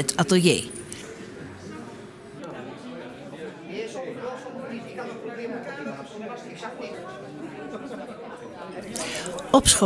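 A group of men and women chat quietly in a room.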